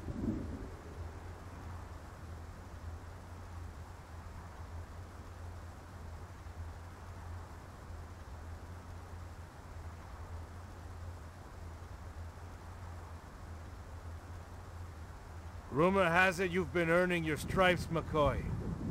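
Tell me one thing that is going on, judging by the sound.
A large fan whirs with a low, steady hum.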